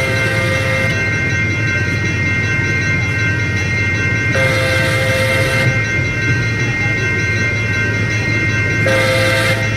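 A diesel locomotive engine rumbles steadily as a train approaches.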